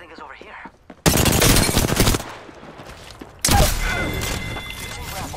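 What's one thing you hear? Gunfire bursts out loudly in a video game.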